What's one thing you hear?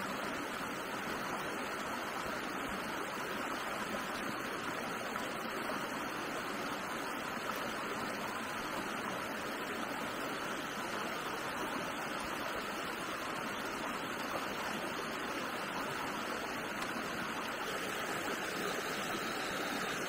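A shallow stream rushes steadily over rocks.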